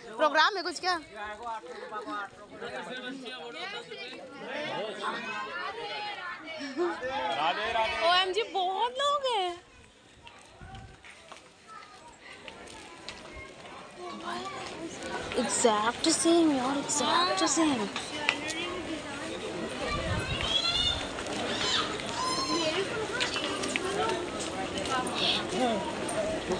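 A crowd of men, women and children chatters close by, outdoors.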